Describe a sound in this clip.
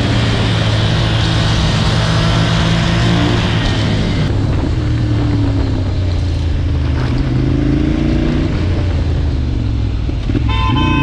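Wind rushes past loudly while riding.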